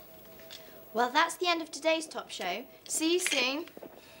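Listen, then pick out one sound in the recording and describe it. A girl speaks brightly and clearly.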